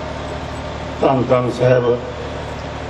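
An elderly man speaks into a microphone, heard through a loudspeaker.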